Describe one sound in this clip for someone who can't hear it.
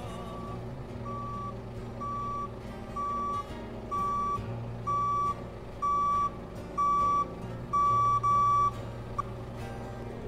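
A forklift's reversing alarm beeps steadily.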